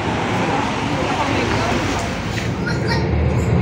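A bus engine idles outside at a stop.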